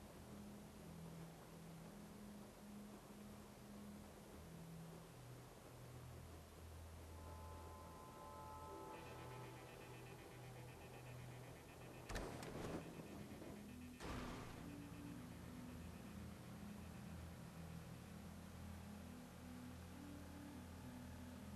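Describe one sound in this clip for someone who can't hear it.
A car engine hums steadily, rising and falling in pitch.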